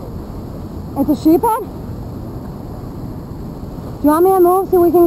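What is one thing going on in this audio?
A man calls out from a short distance.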